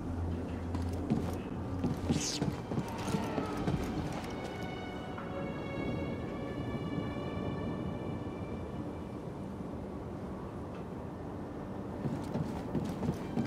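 Footsteps run on a metal floor.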